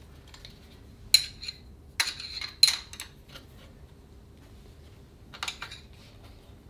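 A metal tool clicks and clinks against an engine part.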